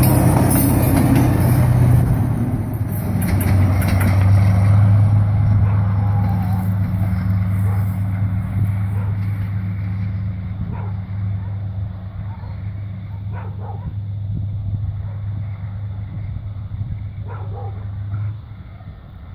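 A diesel locomotive engine rumbles loudly nearby, then fades as it moves away.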